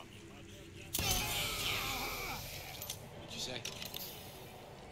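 A sharp magical energy burst crackles and hisses.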